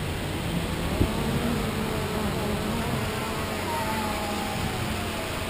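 A fishing line whizzes off a reel as a cast is made.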